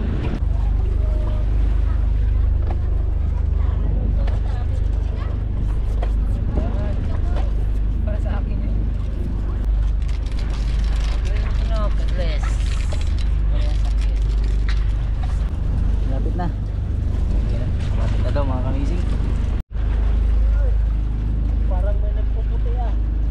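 Wind rumbles steadily across the open sea.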